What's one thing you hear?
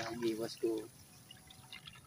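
A hooked fish flaps and wriggles on the line.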